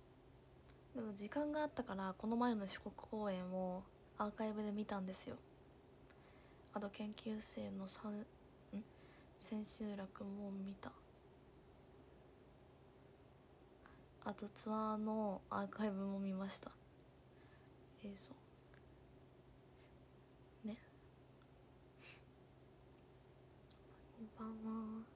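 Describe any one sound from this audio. A young woman talks softly and casually close to a microphone, in short bursts with pauses.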